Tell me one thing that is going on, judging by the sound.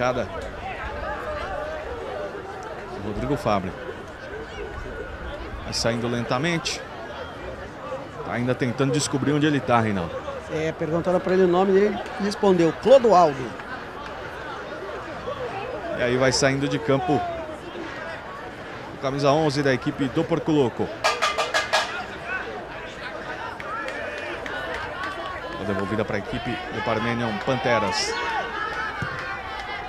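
A crowd of spectators murmurs in the background outdoors.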